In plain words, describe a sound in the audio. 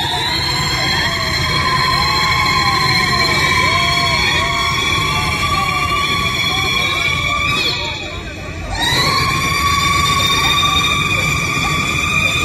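A crowd of young men chatters and calls out close by, outdoors.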